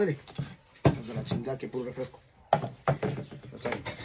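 Dishes clatter on a table.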